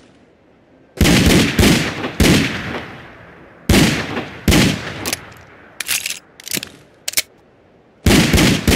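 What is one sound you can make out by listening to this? Loud gunshots ring out in quick bursts.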